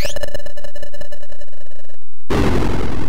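Electronic game tones beep in a quick, steady rhythm.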